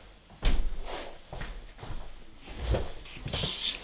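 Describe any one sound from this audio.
A chair creaks as a man sits down on it.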